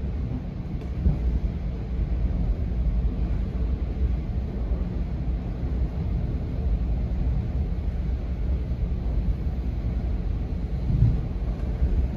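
Train wheels knock now and then on the rails.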